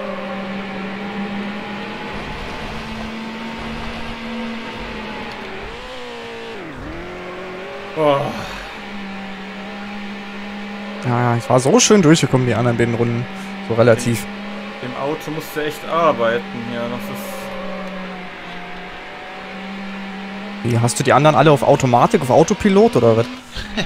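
A car engine hums steadily at high speed.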